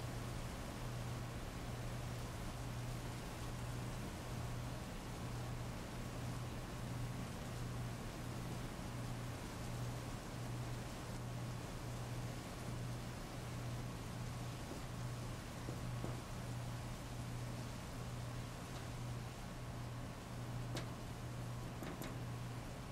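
Heavy rain pours steadily onto pavement.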